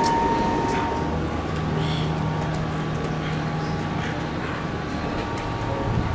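Water laps gently against a dock.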